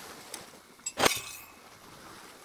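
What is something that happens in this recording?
A game's crafting sound effect plays briefly.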